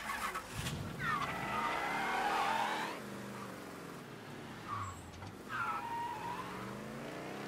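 A car engine revs and idles.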